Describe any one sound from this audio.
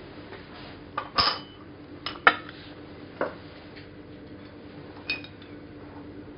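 Glass clinks against glass.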